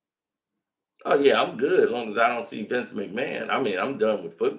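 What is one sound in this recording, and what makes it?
A middle-aged man talks calmly and close up into a microphone.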